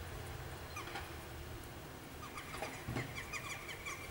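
Wings flap as a jackdaw takes off.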